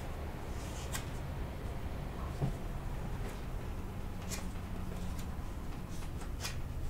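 Playing cards riffle and snap as they are shuffled by hand.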